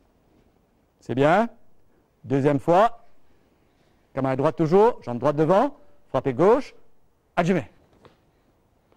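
A man speaks in short bursts.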